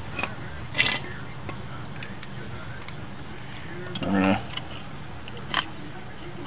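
Small metal parts clink and scrape as hands handle them.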